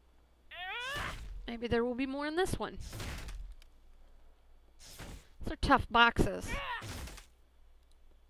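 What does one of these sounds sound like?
Heavy blows strike a wooden chest.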